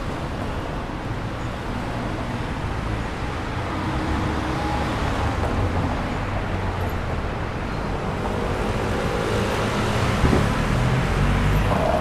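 Traffic hums steadily along a city street outdoors.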